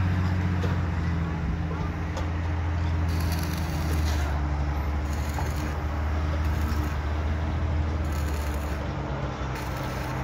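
An electric welder crackles and hisses steadily up close.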